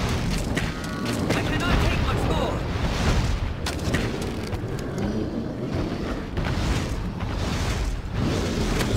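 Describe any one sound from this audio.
Arrows whoosh and thud in quick succession.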